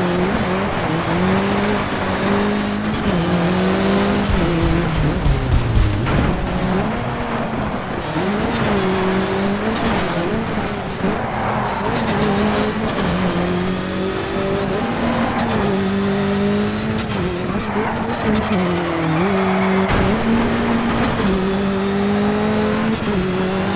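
Tyres crunch and slide over gravel.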